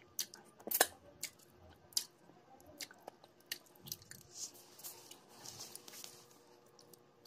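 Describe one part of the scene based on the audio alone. A young woman chews and smacks her lips close by.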